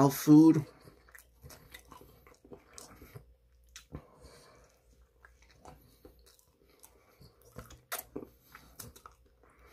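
A young man chews food with his mouth closed.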